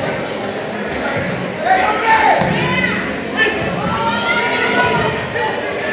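A ball thuds against the floor and is kicked.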